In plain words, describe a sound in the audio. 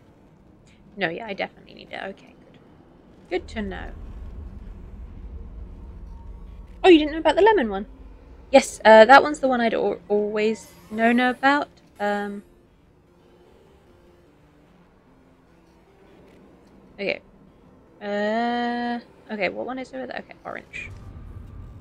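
A woman talks with animation into a close microphone.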